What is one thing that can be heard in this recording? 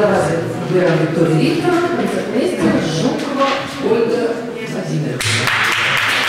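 A woman speaks into a microphone, announcing in an echoing hall.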